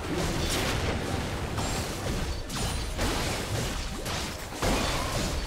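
Video game combat effects crackle and thud.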